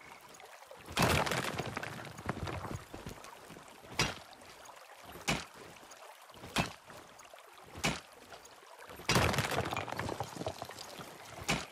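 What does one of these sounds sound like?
Rock crumbles and clatters as an ore deposit breaks apart.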